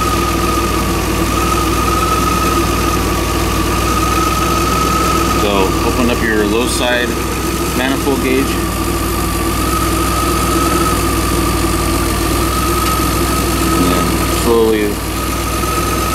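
A car engine idles steadily nearby.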